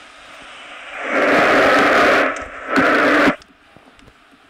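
A stadium crowd roars loudly in a short burst.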